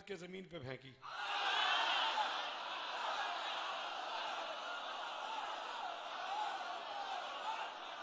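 A crowd of men cries out and chants loudly together.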